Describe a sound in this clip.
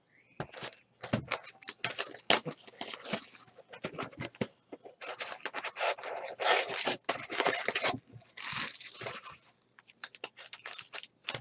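Wrapped trading card packs crinkle in hands.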